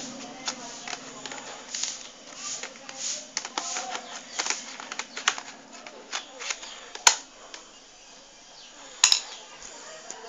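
Hard plastic clicks and knocks as a laptop is handled and turned over.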